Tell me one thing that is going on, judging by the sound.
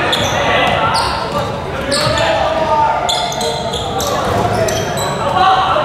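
Sneakers squeak sharply on a wooden floor in a large echoing hall.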